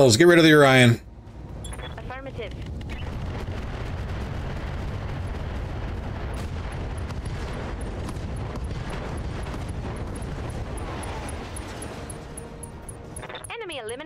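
Explosions rumble deep and long, then die away.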